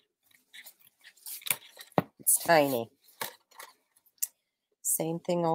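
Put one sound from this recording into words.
Scissors snip through card stock.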